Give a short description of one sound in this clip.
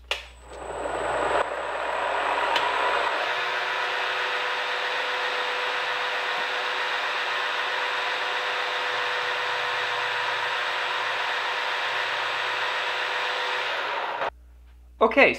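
A milling machine whirs steadily as its cutter grinds into metal.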